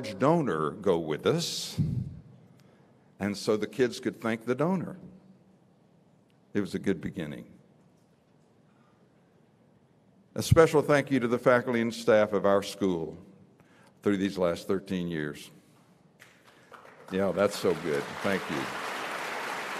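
An elderly man speaks calmly through a microphone in a large echoing hall, pausing between phrases.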